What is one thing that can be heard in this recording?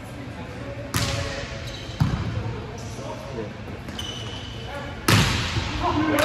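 A volleyball is struck hard with loud smacks that echo.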